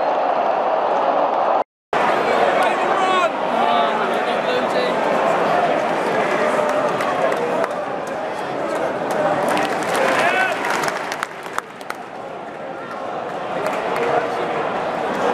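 A large stadium crowd chants and sings loudly in a wide open space.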